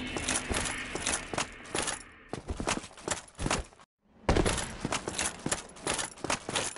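Heavy armoured footsteps thud quickly on stone.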